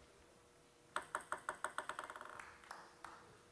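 A ping-pong ball bounces repeatedly on a table before a serve.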